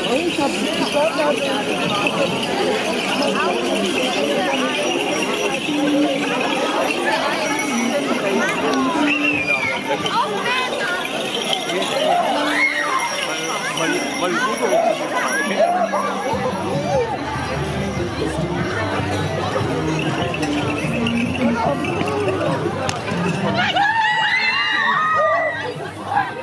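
A crowd of people chatters and calls out outdoors.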